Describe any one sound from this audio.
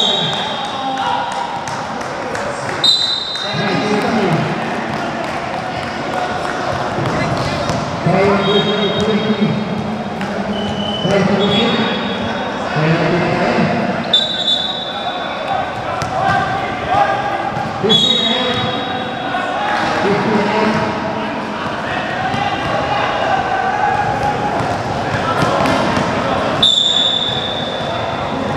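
Sneakers squeak on a sports court.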